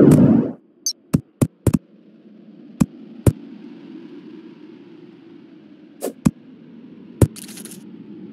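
Sharp game sounds of a pickaxe striking blocks tick out at uneven intervals.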